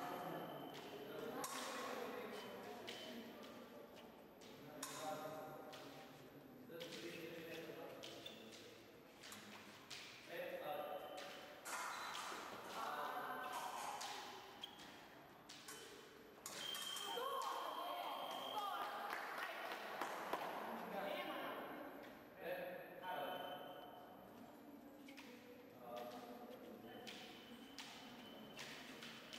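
Fencers' feet shuffle and stamp on a hard floor.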